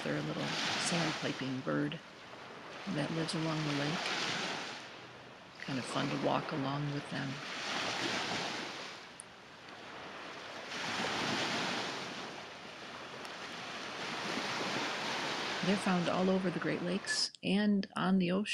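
Waves wash and break onto a shore, swelling and fading.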